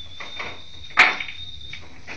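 Billiard balls clack together on a table.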